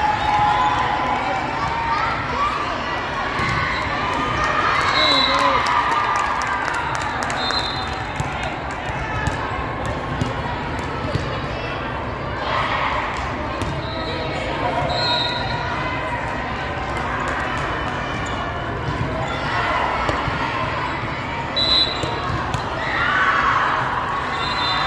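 Young women shout and cheer on a volleyball court in a large echoing hall.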